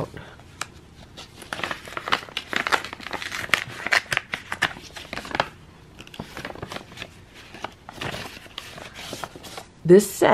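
Paper rustles and crinkles as an envelope is handled and opened.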